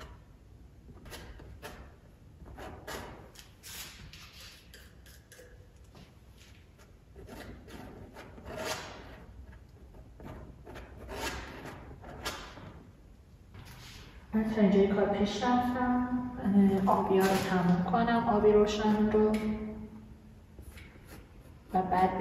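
A palette knife scrapes and smears thick paint across a canvas.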